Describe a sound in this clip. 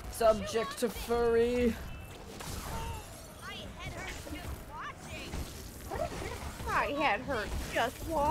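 A large winged monster roars.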